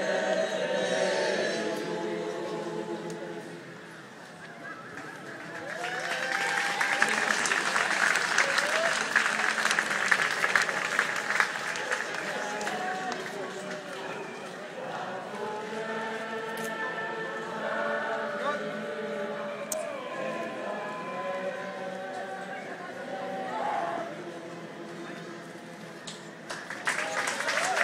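A large crowd sings together outdoors.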